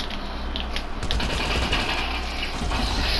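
Rapid gunshots crack nearby.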